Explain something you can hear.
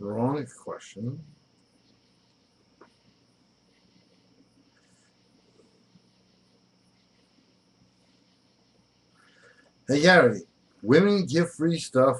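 A middle-aged man speaks close to a microphone, with pauses.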